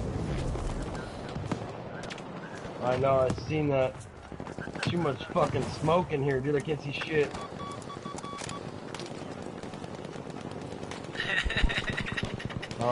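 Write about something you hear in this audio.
Rifle shots crack and echo in a battle.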